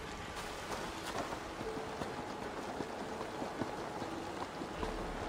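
Footsteps clatter on a wooden ladder.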